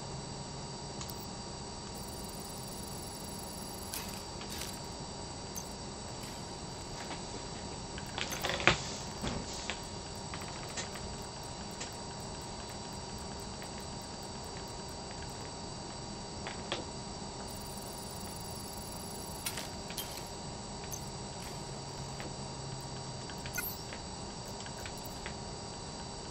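Soft interface clicks and ticks sound as menu items are selected.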